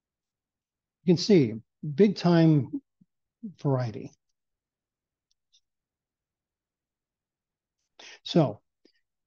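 An older man speaks calmly in short phrases through an online call.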